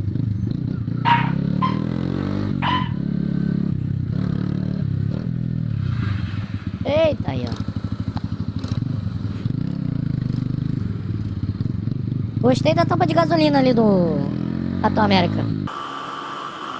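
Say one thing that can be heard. A motorcycle engine rumbles close by while riding.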